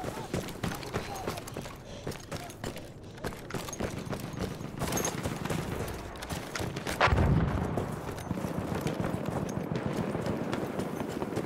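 Footsteps run on sand.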